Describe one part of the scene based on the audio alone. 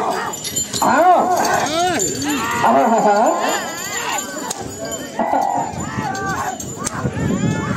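Men shout loudly as they drive bulls along.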